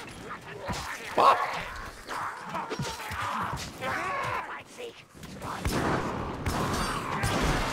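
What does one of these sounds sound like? A blade slashes into rat creatures with wet, meaty impacts.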